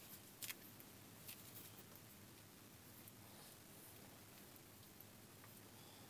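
A knife shaves wood with soft, faint scrapes.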